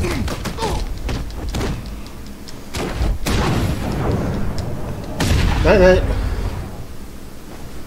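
Heavy blows land with loud thuds.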